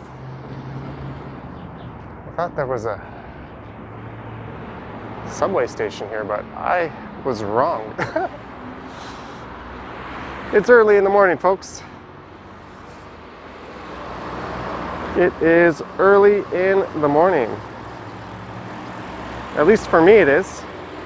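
Traffic hums steadily on a nearby street outdoors.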